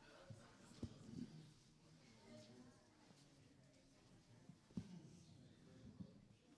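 Several adults murmur and chat quietly in a large echoing hall.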